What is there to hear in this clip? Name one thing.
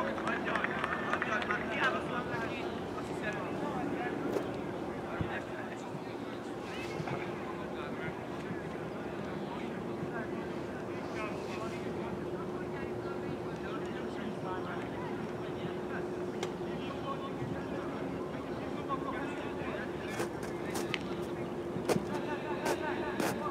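Young men shout and call out to each other across an open pitch outdoors.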